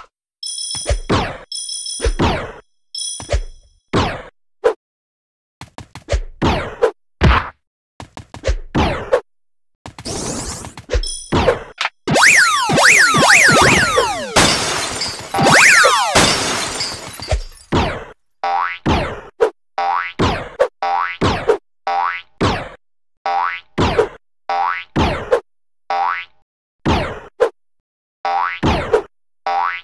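Short cartoon whooshes sound again and again as a game character jumps.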